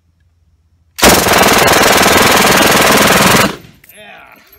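A machine gun fires a long, continuous roaring burst outdoors.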